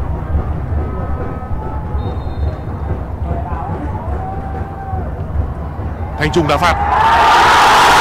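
A large stadium crowd murmurs and whistles.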